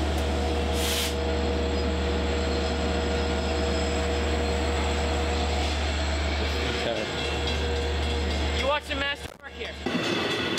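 A diesel train engine rumbles loudly nearby.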